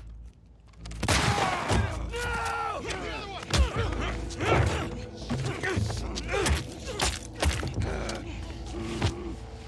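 Bodies scuffle and thump against a couch.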